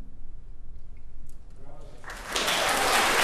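A clarinet plays softly in a large hall.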